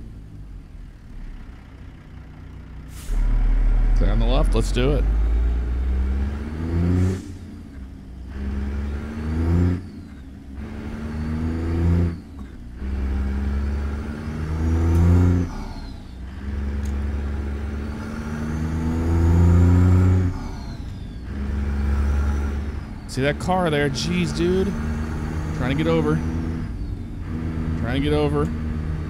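A truck engine revs up and down as the gears shift, roaring loudly.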